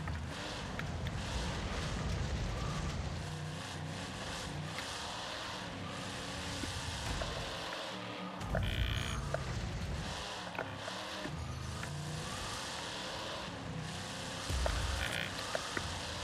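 Tyres churn and skid on loose dirt.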